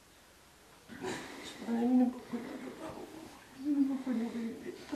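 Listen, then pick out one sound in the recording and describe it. An elderly woman speaks close by in a wailing, tearful voice.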